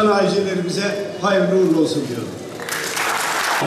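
An older man speaks into a microphone over a loudspeaker.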